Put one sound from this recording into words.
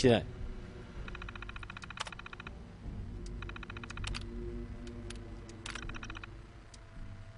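A computer terminal chatters rapidly as text prints out.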